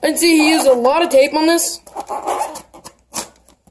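A blade slices through packing tape on a cardboard box.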